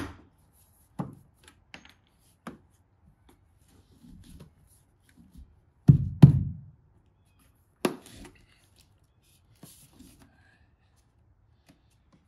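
Hands tap and knock on a metal door threshold.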